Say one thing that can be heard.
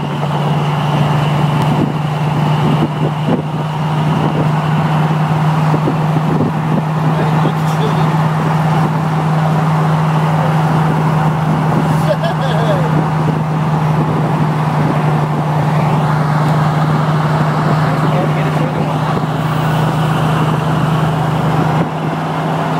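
Tyres roar steadily on a highway.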